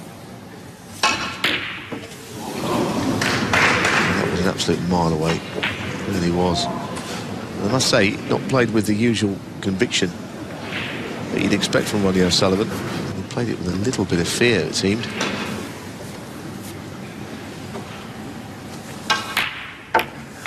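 A snooker cue strikes the cue ball with a sharp click.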